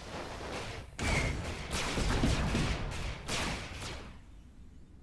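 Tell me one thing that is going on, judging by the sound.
Blaster shots fire in rapid bursts.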